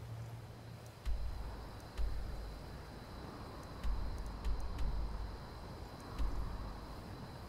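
Soft clicks and whooshes sound a few times.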